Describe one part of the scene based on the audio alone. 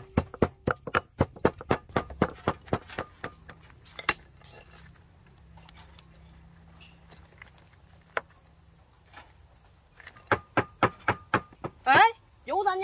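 A wooden pestle pounds rapidly in a ceramic mortar.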